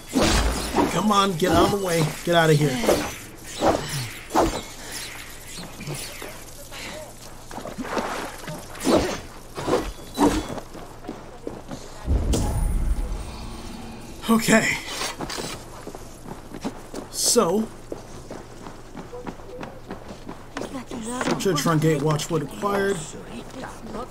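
A man speaks casually into a headset microphone.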